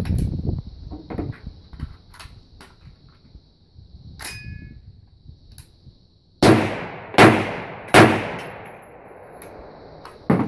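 Metal parts of a rifle click and clack as they are handled.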